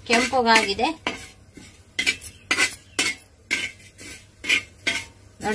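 A metal spatula scrapes against a pan in short strokes.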